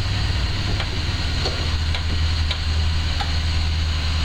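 A lift mechanism clicks now and then as it moves.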